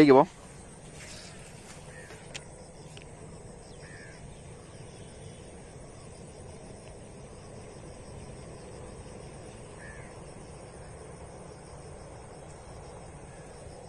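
A fishing reel clicks softly as it is handled.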